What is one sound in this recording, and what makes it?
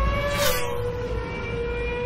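A race car engine roars at high revs and shifts gear.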